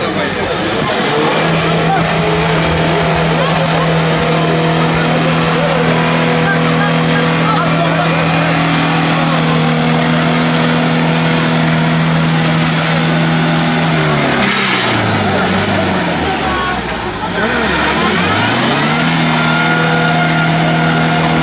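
An engine roars steadily, dropping low and then revving up again.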